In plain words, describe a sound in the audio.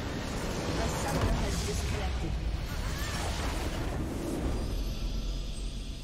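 A large game structure explodes with a booming blast.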